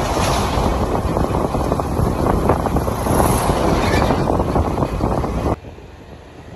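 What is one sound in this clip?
Wind buffets loudly against the microphone.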